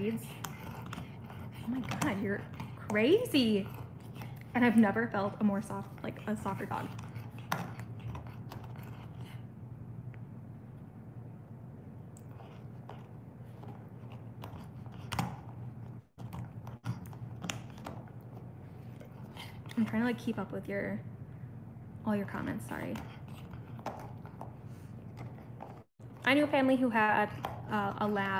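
A dog gnaws and chews on a hard bone close by.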